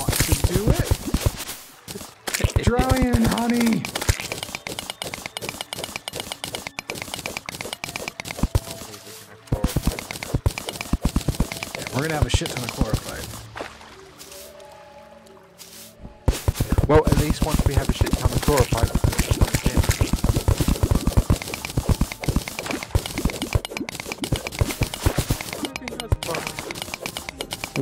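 A pickaxe chips rapidly at rock in a game, with quick repeated clicks.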